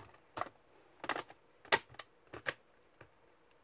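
Fingers tap quickly on laptop keys.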